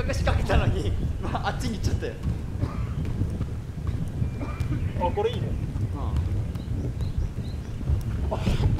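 Feet thump and bounce on a large inflated cushion.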